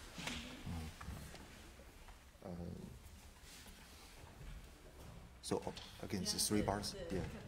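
A man speaks calmly in a large, echoing hall.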